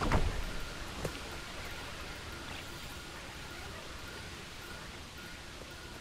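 Footsteps thud on dirt.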